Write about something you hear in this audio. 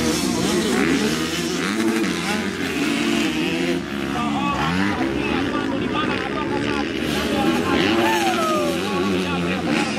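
A dirt bike engine revs loudly, rising and falling.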